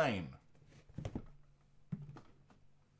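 A hard plastic card case knocks lightly against a surface.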